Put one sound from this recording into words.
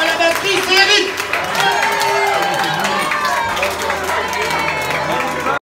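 A rock band plays loudly with electric guitars and drums.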